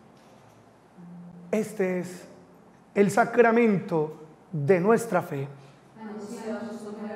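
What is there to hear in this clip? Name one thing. A man sings a chant with a full voice through a microphone in a reverberant room.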